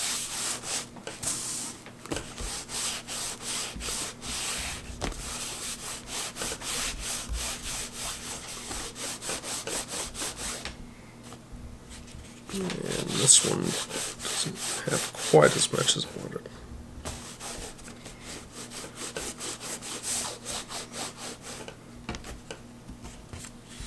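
A man talks calmly and steadily close by.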